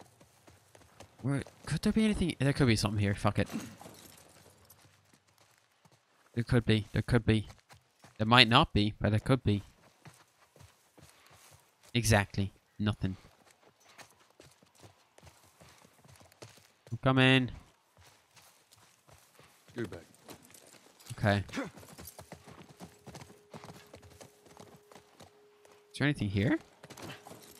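A horse's hooves clop slowly on the ground.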